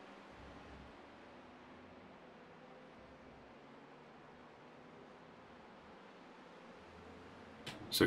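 Race car engines hum steadily.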